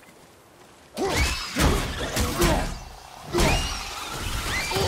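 An axe strikes a metal wheel with loud clanging blows.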